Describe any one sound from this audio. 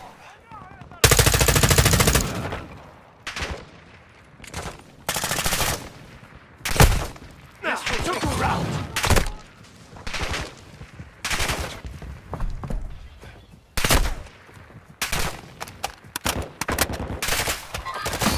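Rapid rifle shots fire in loud bursts.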